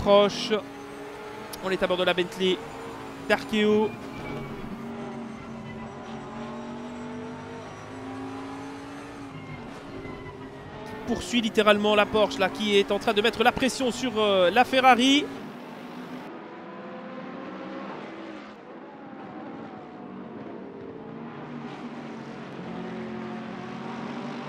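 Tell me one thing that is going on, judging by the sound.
Racing car engines roar steadily, with rising and falling revs.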